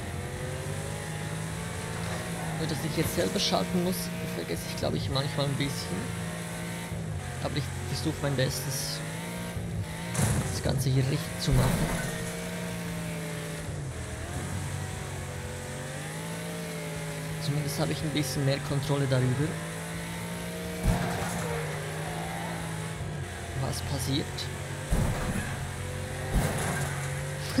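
A race car engine roars steadily, its pitch rising and falling as it shifts gears.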